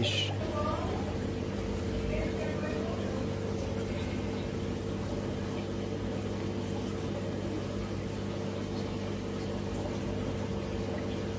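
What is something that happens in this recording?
Water bubbles gently in a fish tank.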